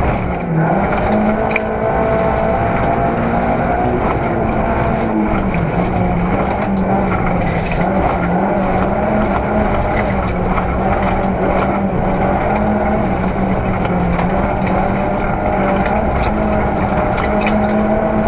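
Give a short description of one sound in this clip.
A rally car engine roars loudly at high revs from inside the cabin.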